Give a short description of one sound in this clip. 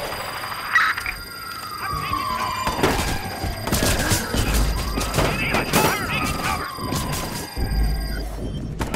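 Police sirens wail nearby.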